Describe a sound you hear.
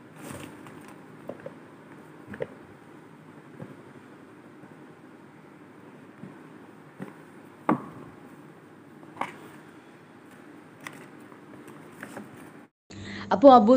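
Hands tap and knock on a small cardboard box.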